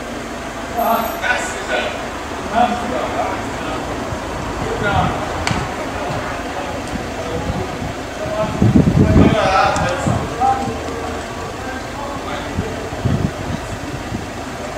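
Men talk and greet each other a short way off.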